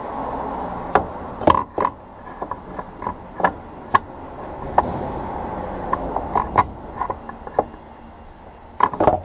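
Fingers tap and knock on a metal cover.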